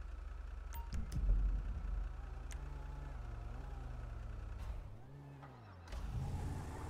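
A heavy truck engine idles and revs.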